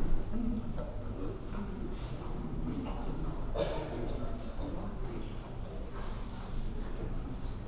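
A brass band plays softly in a large echoing hall.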